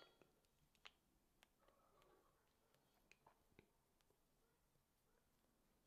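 A small knife softly nicks and clicks against soft dough close by.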